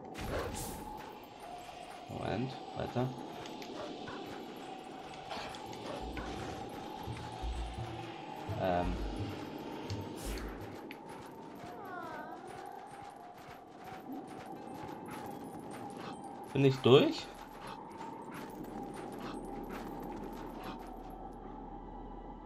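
Wind howls through a snowstorm.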